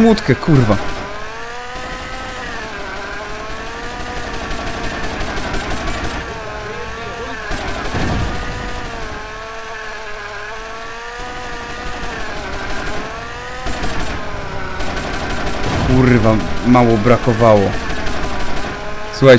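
A small toy plane engine buzzes steadily, its pitch wavering up and down.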